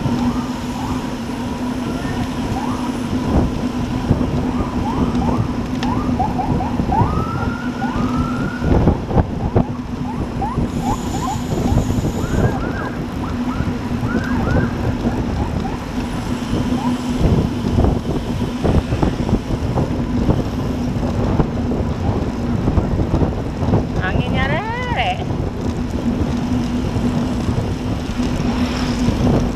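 Bicycle tyres hum along the asphalt road.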